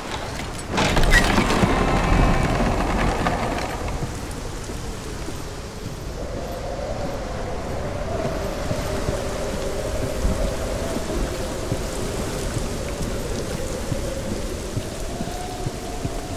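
Rain pours down steadily outdoors.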